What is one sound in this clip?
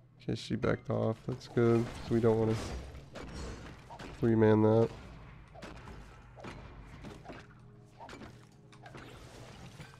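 Video game combat sound effects clash and crackle.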